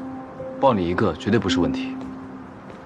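A young man speaks softly and warmly, close by.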